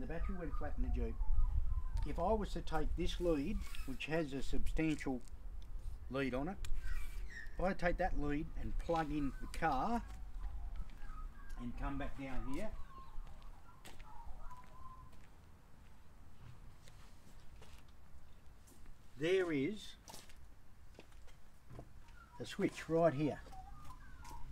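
A man talks calmly close by, outdoors.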